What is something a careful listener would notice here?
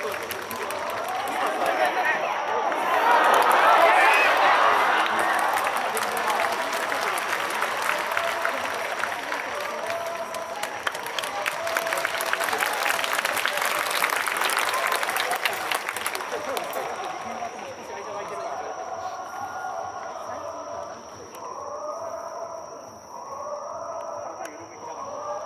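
A large crowd of fans chants in unison across an open stadium.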